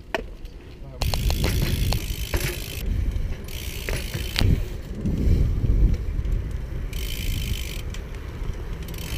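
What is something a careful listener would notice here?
Bicycle tyres roll on pavement.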